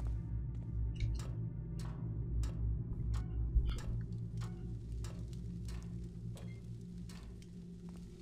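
Footsteps clank rhythmically on ladder rungs during a climb.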